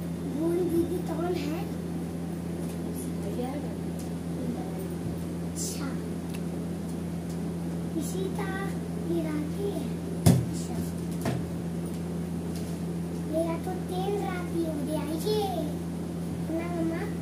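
A young boy speaks briefly nearby.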